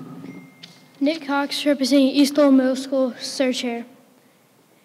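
A boy speaks clearly into a microphone in a large echoing hall.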